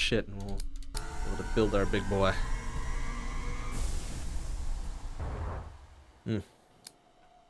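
A spaceship's engine roars and whooshes as it speeds up.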